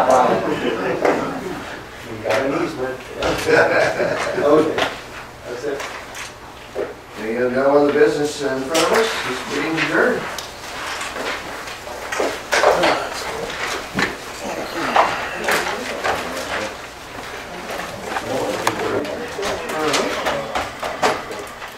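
A man speaks calmly into a microphone in a room.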